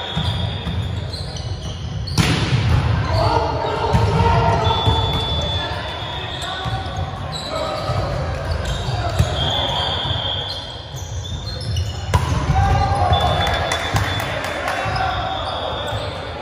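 Young people shout and call out with animation in a large echoing hall.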